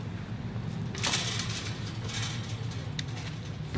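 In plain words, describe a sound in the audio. A metal gate rattles as it swings open.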